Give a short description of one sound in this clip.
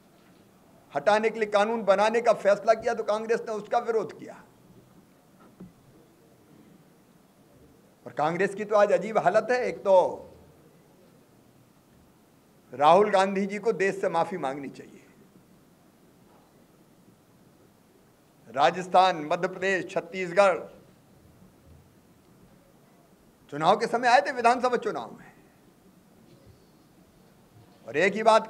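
A middle-aged man speaks firmly into microphones, in short bursts with pauses.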